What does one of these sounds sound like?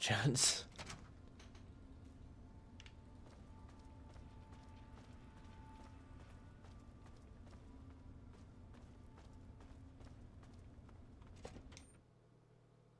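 Footsteps tap on a hard floor in a steady walking rhythm.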